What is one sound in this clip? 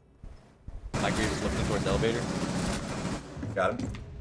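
Gunfire bursts rapidly.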